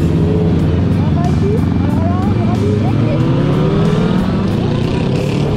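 Several motorcycle engines rumble close by.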